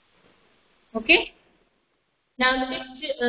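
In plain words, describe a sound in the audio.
A woman speaks briefly, close by.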